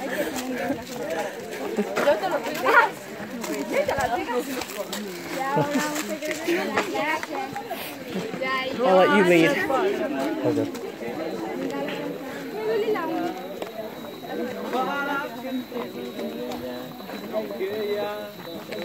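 Young men and women chat and call out nearby, outdoors.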